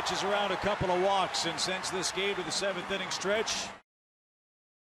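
A stadium crowd claps.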